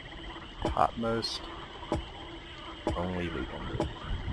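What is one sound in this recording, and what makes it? Strange creatures let out low, wavering hooting calls.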